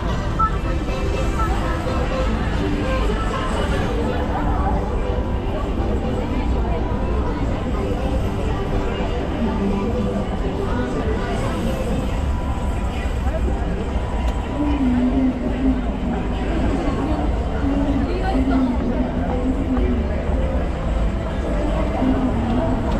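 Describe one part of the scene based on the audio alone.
Crowd voices murmur all around outdoors.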